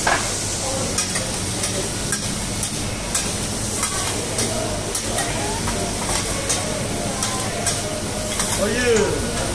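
Metal spatulas scrape and clack against a griddle.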